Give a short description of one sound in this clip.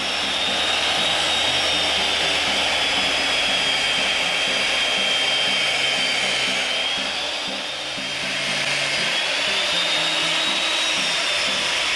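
A circular saw whines loudly as it cuts along a wooden beam.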